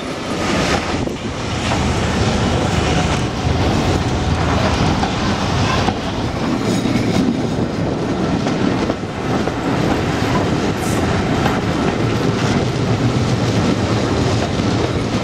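Wheels clatter rhythmically over rail joints.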